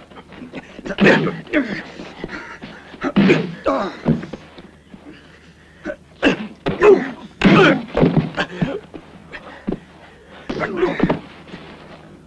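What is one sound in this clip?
Men grunt and groan as they fight.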